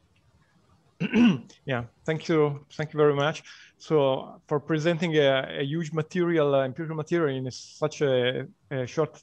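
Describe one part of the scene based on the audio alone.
A middle-aged man speaks steadily over an online call.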